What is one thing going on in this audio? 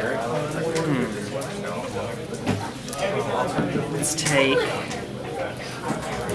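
Playing cards riffle and slap softly as a hand shuffles them.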